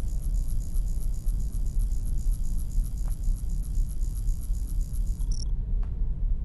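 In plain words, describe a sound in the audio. A clock ticks steadily and quickly.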